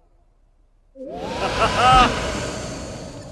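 A magical puff of smoke bursts with a shimmering whoosh.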